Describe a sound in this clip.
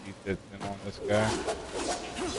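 A chain whip lashes through the air.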